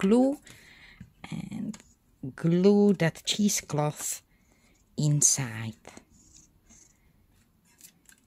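Cardboard creaks and taps softly as it is folded by hand.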